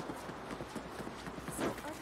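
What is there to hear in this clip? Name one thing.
Footsteps run over pavement.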